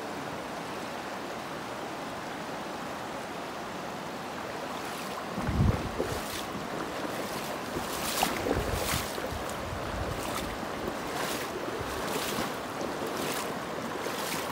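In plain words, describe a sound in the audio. A shallow river rushes steadily over stones.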